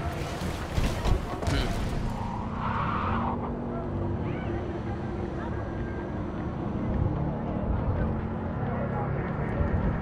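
A car engine hums steadily while driving.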